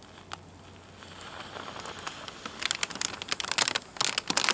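A plastic pouch crinkles and crackles as it swells.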